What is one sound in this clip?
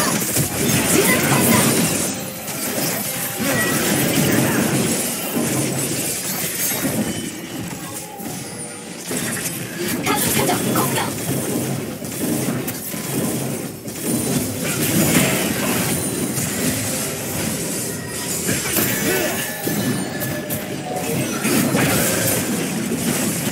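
Fantasy battle game spell effects whoosh and blast.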